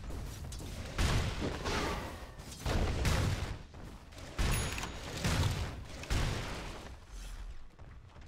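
Blows and magic blasts clash in a fast video game fight.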